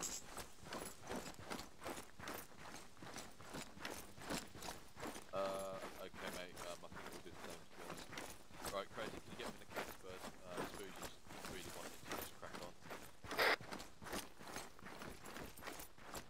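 Footsteps crunch and rustle through grass and undergrowth.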